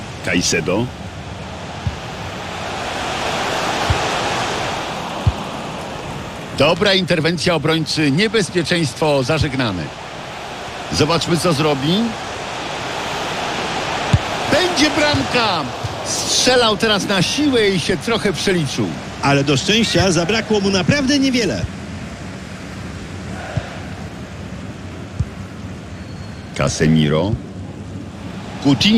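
A large crowd roars and swells in a stadium.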